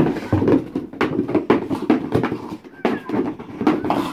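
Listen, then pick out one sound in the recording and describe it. A dog gnaws and bites at a cardboard box.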